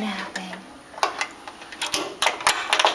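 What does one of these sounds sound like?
A hand rattles a metal latch on a wire cage door.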